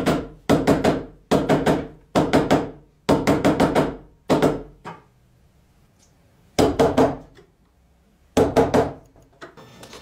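A mallet strikes a chisel into wood with sharp, quick knocks.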